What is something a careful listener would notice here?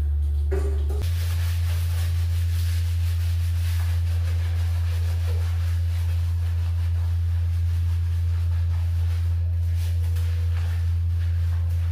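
A sponge scrubs wet, soapy skin.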